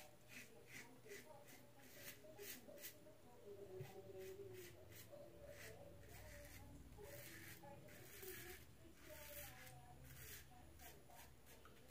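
A razor scrapes through stubble in short, quick strokes.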